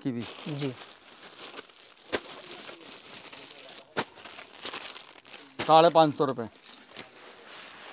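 Plastic packaging rustles as it is handled.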